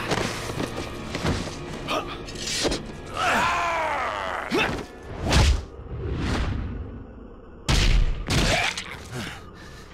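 Heavy blows and thuds land in a scuffle.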